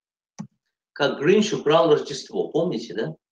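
A middle-aged man speaks calmly into a microphone over an online call.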